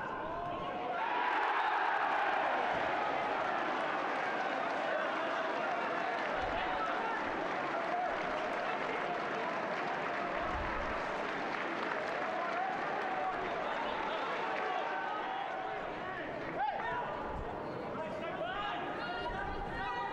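Young men shout and cheer in celebration outdoors.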